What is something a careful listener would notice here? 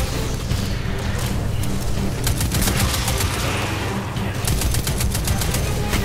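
Energy blasts whoosh and crackle nearby.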